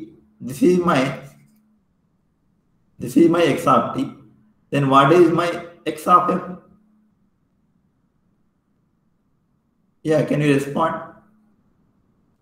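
A young man speaks calmly through an online call microphone, in short phrases with pauses.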